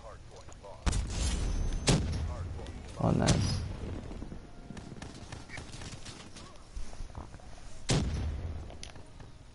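Gunshots crack and boom in a video game.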